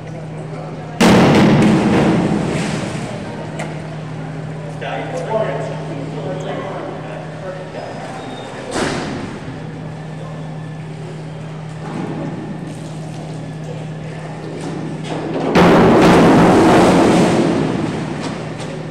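A diver splashes into the water of a pool, with a loud echo around a large hall.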